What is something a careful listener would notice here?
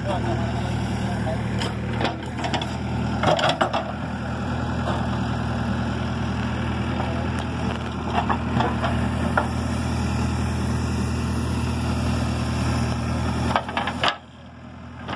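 A diesel excavator engine rumbles steadily close by.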